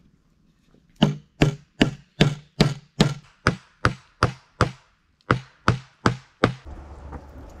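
A hammer drives nails into wooden boards.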